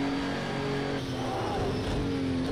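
A racing car engine drops in pitch as the car brakes hard.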